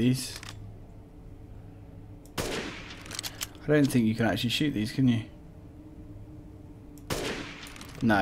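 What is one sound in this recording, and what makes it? A pistol fires sharp single shots.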